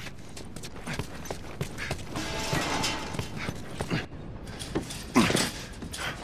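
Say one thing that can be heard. Footsteps run and scuff on a hard floor.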